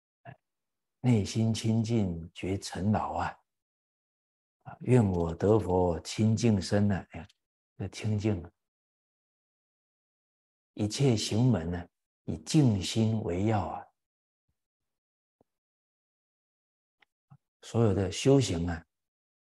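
A middle-aged man speaks calmly and clearly into a close microphone, in short phrases with pauses.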